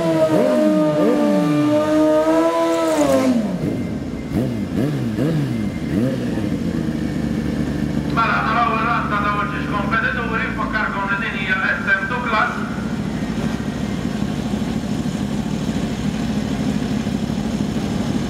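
A second motorcycle engine idles and revs nearby.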